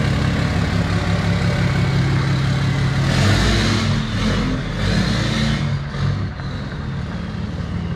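A truck drives away and its engine fades into the distance.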